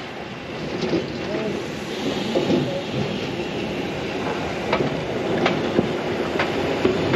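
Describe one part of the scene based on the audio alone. A steam locomotive chuffs and rumbles as it rolls slowly closer.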